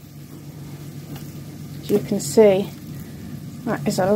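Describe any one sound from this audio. A spatula scrapes and stirs soft cheese in a bowl.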